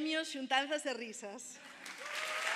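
A woman speaks excitedly into a microphone in a large hall.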